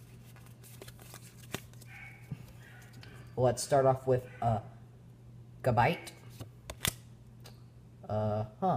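Trading cards rustle and flick in a boy's hands.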